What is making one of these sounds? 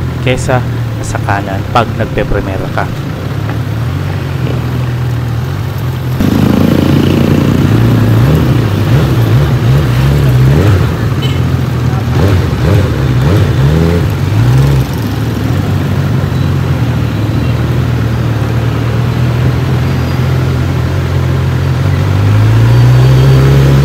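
Motorcycle tyres roll over pavement.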